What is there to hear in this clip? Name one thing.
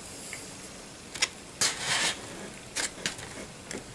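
Plastic models tap and scrape against a table as a hand moves them.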